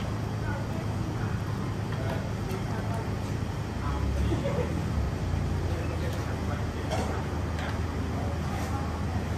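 A large pot of broth bubbles and steams.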